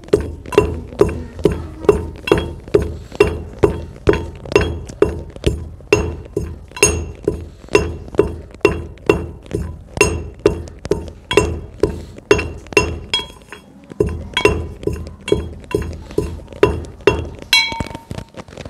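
A pestle pounds in a metal mortar with a steady, ringing rhythm.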